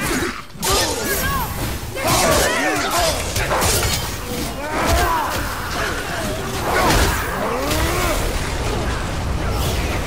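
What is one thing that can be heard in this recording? An axe strikes creatures with heavy impacts.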